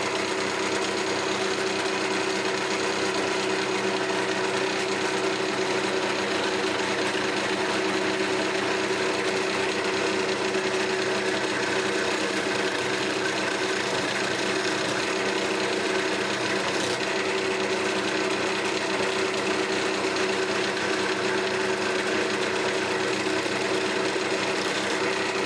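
A skew chisel shaves ash on a lathe.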